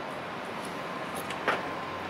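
A man's footsteps tap on a paved path.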